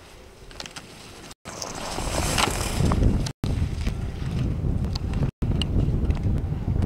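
Skis carve and scrape across hard snow.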